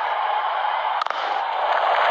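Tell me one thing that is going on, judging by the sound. A bat strikes a cricket ball with a sharp crack.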